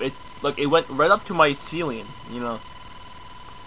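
A young man speaks casually and close to a microphone.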